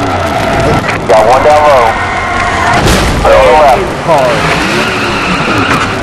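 Tyres squeal as a race car spins out.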